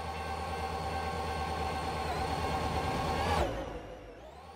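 A train engine drones loudly and then suddenly cuts off.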